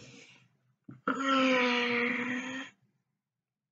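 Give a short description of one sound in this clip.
A young woman squeals loudly.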